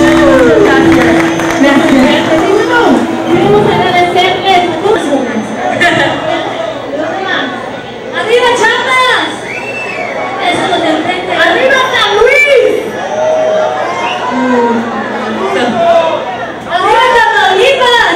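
A young woman talks with animation through a microphone and loudspeakers.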